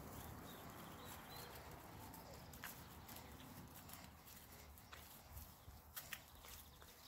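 Turkeys cluck softly close by.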